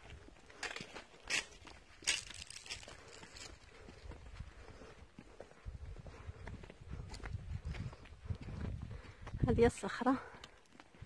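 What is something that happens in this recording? Footsteps scuff on bare rock.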